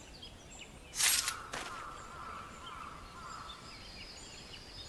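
A bright chime rings and fades.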